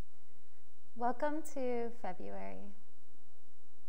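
A young woman speaks calmly and softly, close to a microphone.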